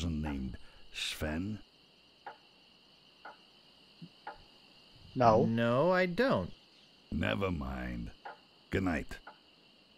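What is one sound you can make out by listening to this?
A young man talks calmly into a microphone.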